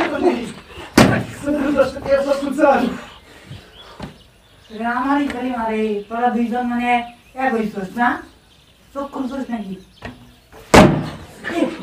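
A plastic bottle smacks against a body with a hollow thud.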